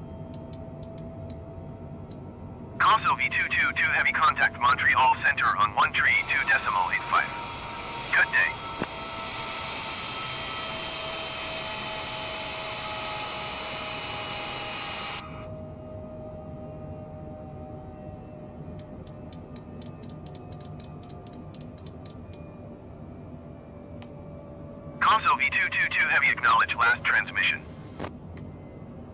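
A jet airliner's engines drone steadily.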